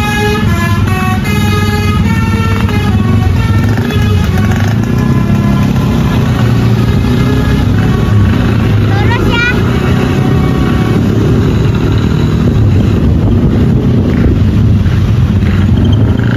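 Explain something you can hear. Motorcycle engines rumble steadily all around.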